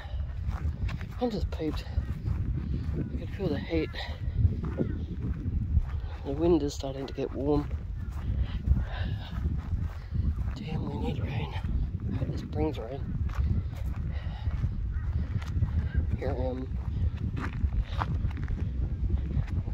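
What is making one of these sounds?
Footsteps crunch on dry grass.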